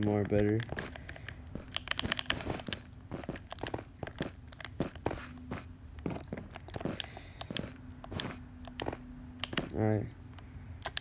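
Blocks are placed with short soft knocks.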